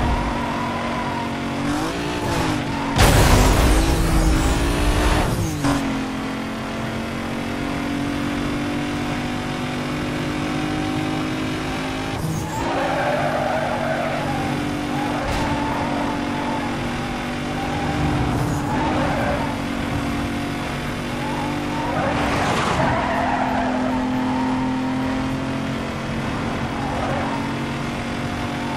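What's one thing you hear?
A race car engine roars at high speed, dropping in pitch briefly as gears shift.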